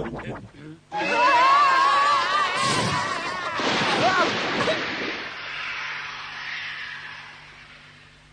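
A boy screams loudly in alarm, then the scream fades.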